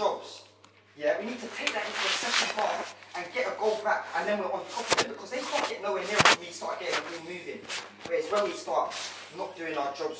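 A man speaks firmly to a group.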